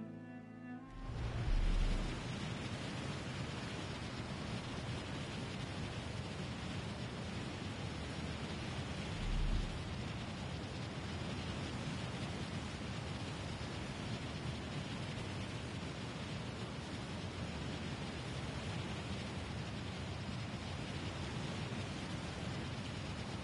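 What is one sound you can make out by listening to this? Wind rushes loudly past during a steady fall through the air.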